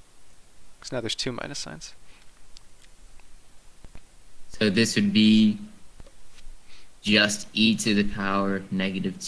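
A young man speaks calmly and close to a microphone, explaining.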